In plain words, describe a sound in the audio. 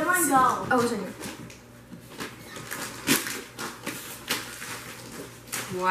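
Wrapping paper rustles and tears.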